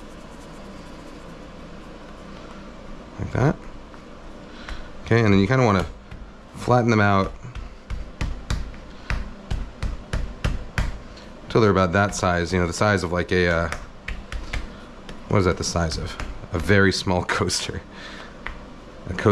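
Hands pat and press soft dough on a wooden board, making soft thuds and taps.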